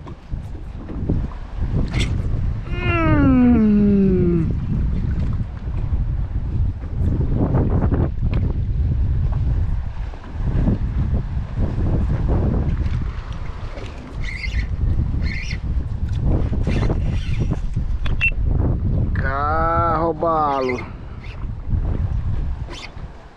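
Wind blows hard across open water, rumbling loudly.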